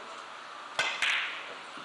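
A cue strikes a billiard ball sharply.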